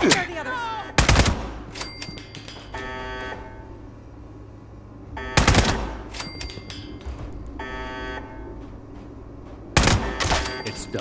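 A rifle fires sharp, loud shots.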